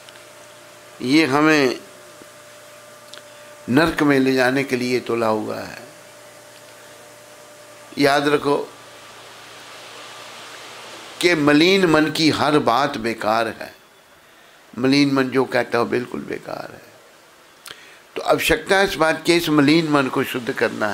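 An elderly man chants and speaks in a drawn-out voice into a microphone, in bursts with pauses.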